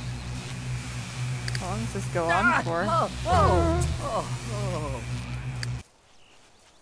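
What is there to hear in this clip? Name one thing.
Electricity crackles and sizzles loudly.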